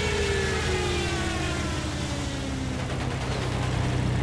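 A falling bomb whistles as it drops in pitch.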